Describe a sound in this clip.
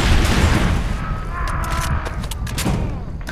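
A rifle magazine clicks as it is swapped out.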